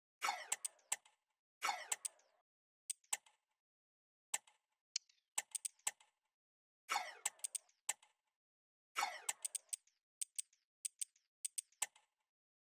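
Short electronic clicks and swooshes of a game menu sound in quick bursts.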